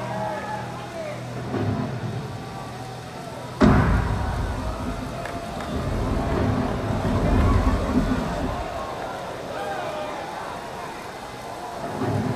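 A large crowd cheers and sings along in a big echoing arena.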